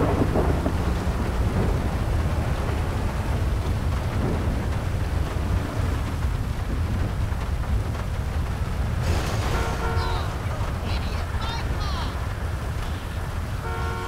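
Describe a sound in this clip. A car engine rumbles low and steady as the car drives.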